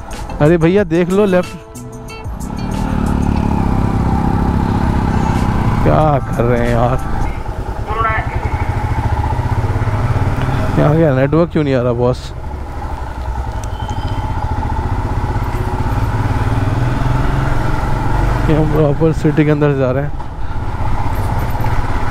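A motorcycle engine hums steadily while riding along, revving now and then.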